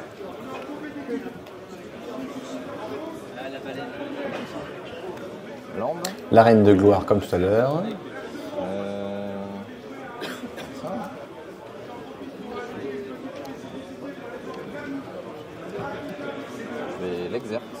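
A man talks steadily and with animation close to a microphone.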